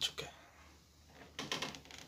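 Hands knock and rub against a hard panel.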